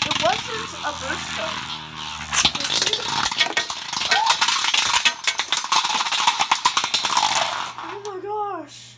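Spinning tops clash and rattle loudly against each other in a plastic arena.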